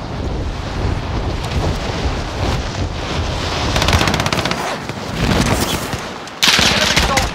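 Wind rushes past during a freefall.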